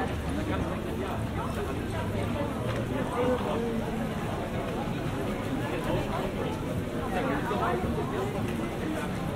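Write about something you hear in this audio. A crowd of people talks indistinctly outdoors.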